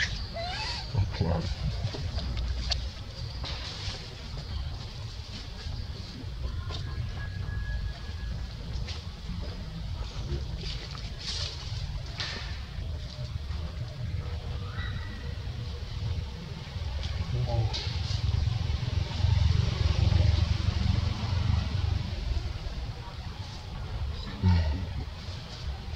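A baby macaque squeals.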